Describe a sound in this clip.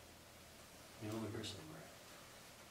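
A man speaks briefly and calmly nearby.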